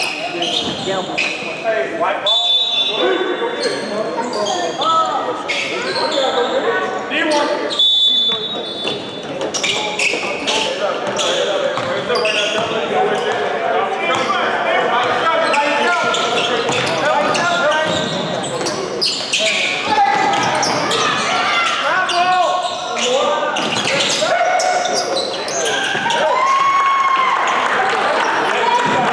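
A crowd chatters in a large echoing gym.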